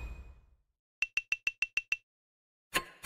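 Quick high chimes tick rapidly as a score counts up.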